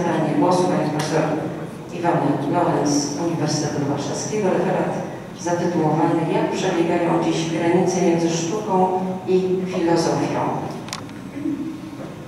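A man speaks calmly into a microphone in a room with some echo.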